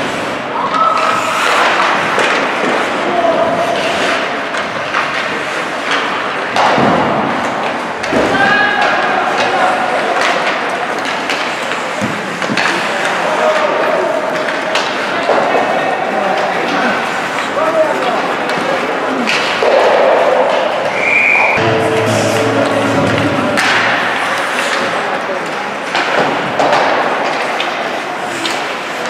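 Skates scrape and hiss across the ice throughout.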